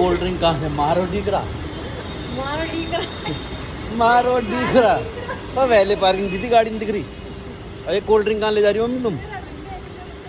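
A middle-aged woman laughs nearby.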